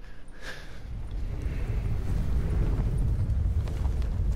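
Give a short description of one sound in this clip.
Wind rushes past loudly during a high-speed glide.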